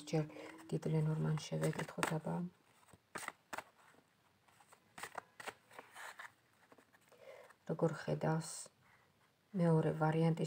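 Playing cards rustle and tap in a hand.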